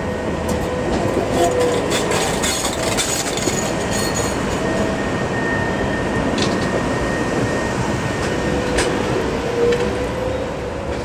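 Tram wheels squeal on the rails.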